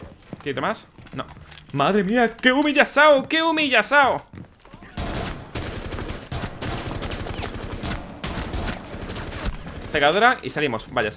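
A young man talks loudly and with animation into a microphone.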